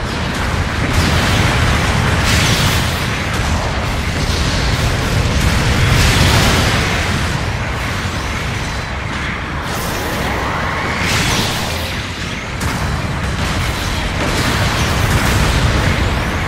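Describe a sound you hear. Explosions boom.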